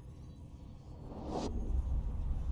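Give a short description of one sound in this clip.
A spaceship's engine whooshes up suddenly.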